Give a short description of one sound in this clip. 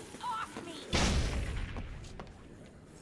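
A heavy thud lands on a hard floor.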